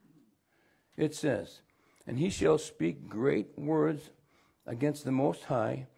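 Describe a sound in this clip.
An older man reads aloud calmly into a nearby microphone.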